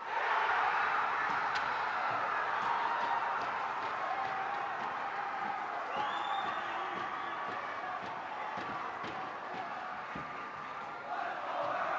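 A crowd cheers loudly in an echoing rink, then slowly quiets down.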